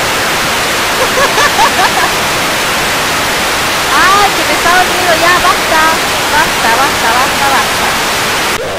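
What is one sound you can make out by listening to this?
A young woman laughs and talks with animation close to a microphone.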